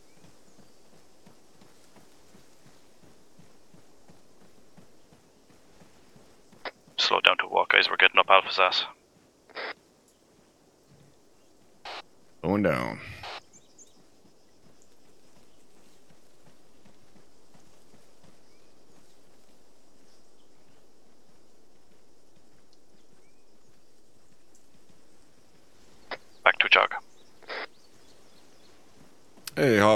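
Footsteps crunch through grass and leaves.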